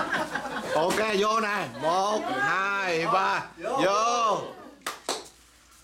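A group of adults cheers together in a long, rising and falling shout.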